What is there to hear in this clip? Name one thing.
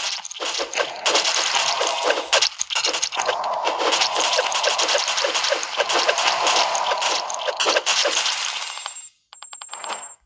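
Rapid game shots and crackling hits ring out.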